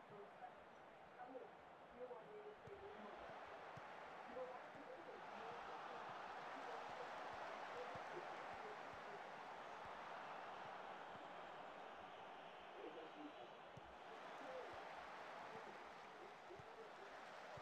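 A large stadium crowd murmurs and cheers steadily, swelling louder for a while.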